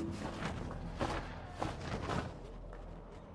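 A large bird flaps its wings.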